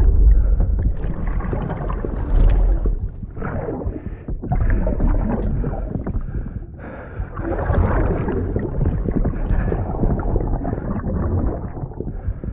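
A man groans and gasps in pain.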